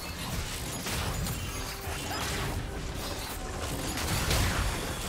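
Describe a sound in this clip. Magic spells burst and crackle during a fight in a video game.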